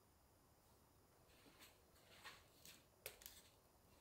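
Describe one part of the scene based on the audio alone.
A basket is set down on a counter.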